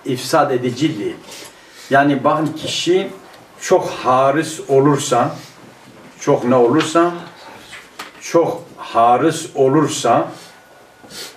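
A middle-aged man speaks calmly and steadily into a nearby microphone.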